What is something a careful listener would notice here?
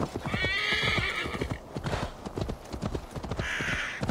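Horse hooves clop on a stone path.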